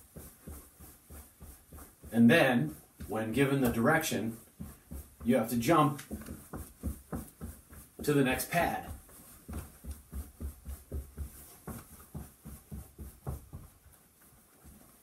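Feet tap rhythmically on a wooden floor.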